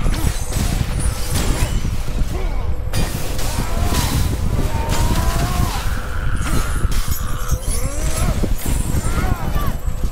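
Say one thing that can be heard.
Blades strike and slash with heavy thuds.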